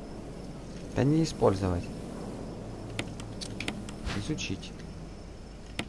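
A young man speaks close into a headset microphone.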